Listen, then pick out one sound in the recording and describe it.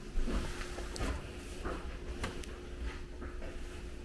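A cabinet door swings open.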